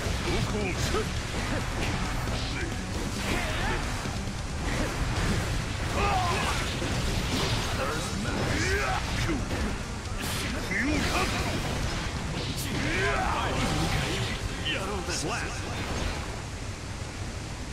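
Sword slashes and blows land hard in quick bursts.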